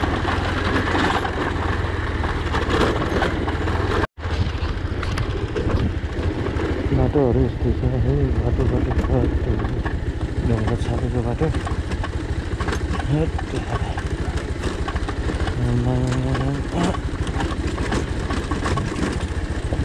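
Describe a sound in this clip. A motorbike engine hums steadily at low speed.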